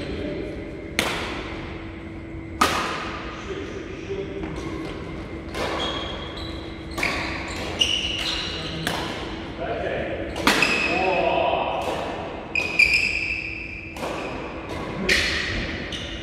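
Rackets strike a shuttlecock with sharp pops that echo in a large hall.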